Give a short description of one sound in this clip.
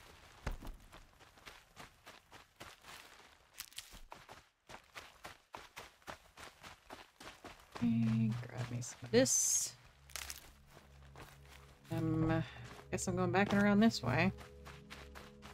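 Footsteps run quickly through grass and brush.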